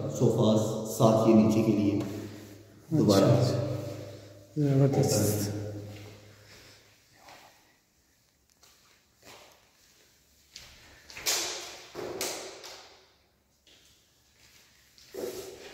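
A young man speaks calmly and clearly close by, in a room with a strong echo.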